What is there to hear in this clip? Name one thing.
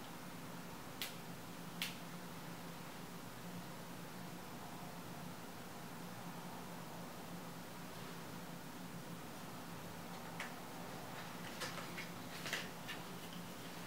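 A small plastic cap clicks and taps in a woman's hands.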